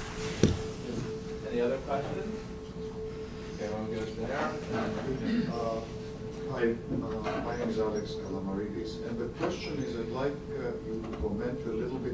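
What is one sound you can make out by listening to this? Another man speaks more quietly, further from the microphone.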